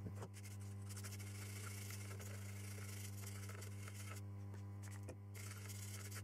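A brush scrubs briskly across a circuit board.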